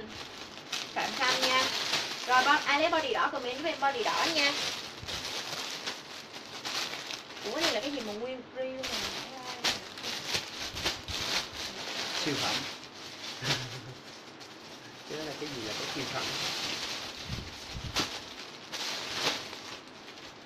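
Fabric rustles as clothes are handled.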